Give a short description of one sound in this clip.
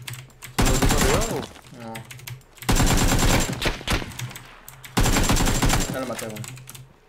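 A rifle fires loud bursts of shots in a video game.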